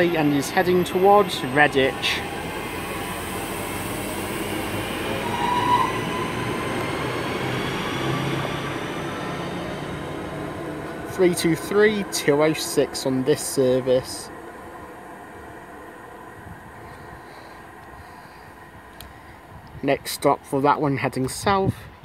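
A train rumbles past close by on the rails and then fades into the distance.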